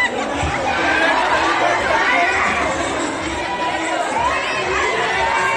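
A crowd of people chatter loudly nearby in an echoing indoor space.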